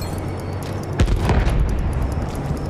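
An explosion booms close by.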